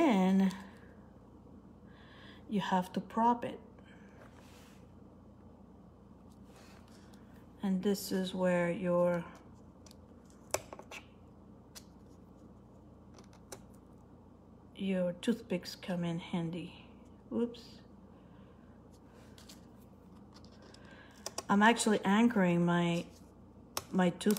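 Light taps and clicks sound as small pieces are pressed and handled.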